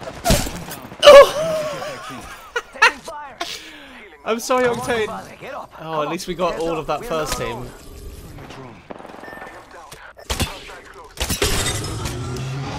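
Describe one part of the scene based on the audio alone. A gun fires several sharp shots.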